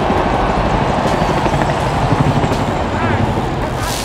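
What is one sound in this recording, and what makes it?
A helicopter flies overhead with a thudding rumble.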